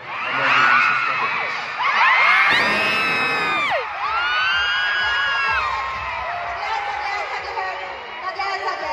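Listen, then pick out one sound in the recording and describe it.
A large crowd of young fans screams and cheers loudly in a big echoing hall.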